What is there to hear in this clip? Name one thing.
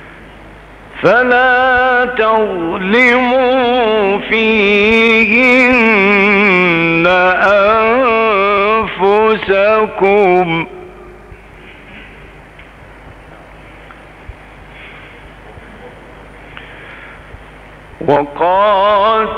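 An elderly man chants in a long, melodic voice through a microphone.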